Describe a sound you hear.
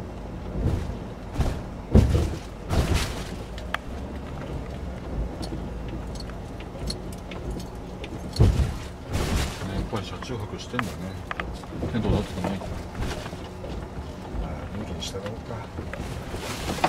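A car engine hums low and steady from inside the car as it drives slowly.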